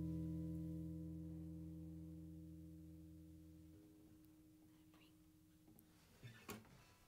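A guitar chord rings out and slowly fades away.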